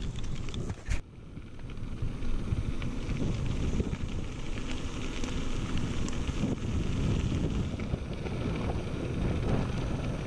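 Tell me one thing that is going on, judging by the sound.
Bicycle tyres crunch and rattle over gravel.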